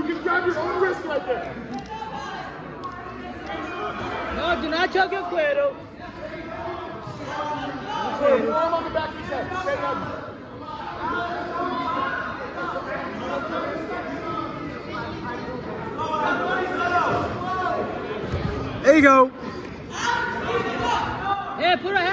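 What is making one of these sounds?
Wrestlers thud and scuff on a padded mat.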